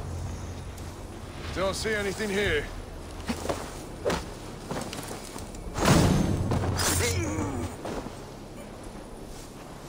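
Leaves and branches rustle as someone pushes through dense bushes.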